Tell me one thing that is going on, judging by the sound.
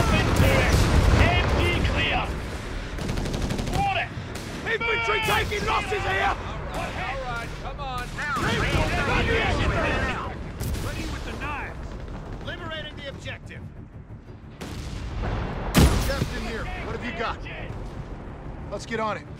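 Gunfire crackles in a battle.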